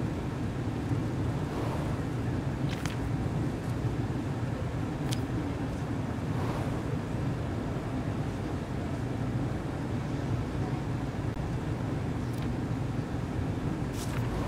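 A paper page flips with a short rustle.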